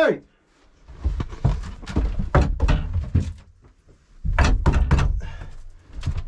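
Wood knocks and scrapes close by as a board is handled.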